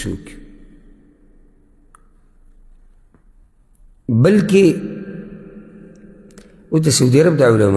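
A man chants in a slow, melodic voice through a microphone, echoing around the room.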